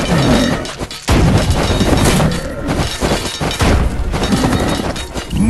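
Swords clash and thud as a game battle rages.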